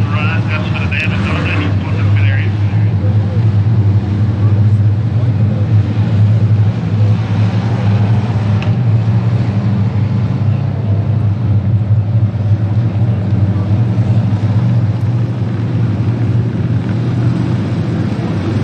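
Race car engines roar steadily around a dirt track outdoors.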